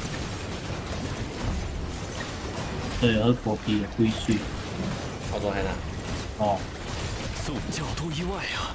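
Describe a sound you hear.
Video game battle effects whoosh and crackle steadily.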